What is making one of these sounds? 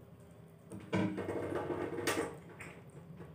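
A young woman slurps and chews noodles.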